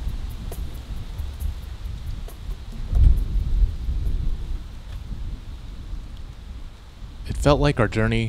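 Wind blows through leaves outdoors.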